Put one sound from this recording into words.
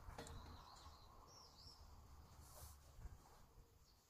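A small hand tool knocks against metal.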